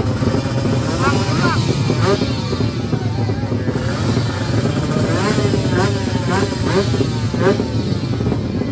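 Motorcycle engines rev sharply again and again.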